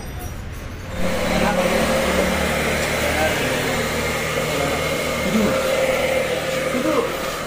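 A hair dryer blows with a steady whir.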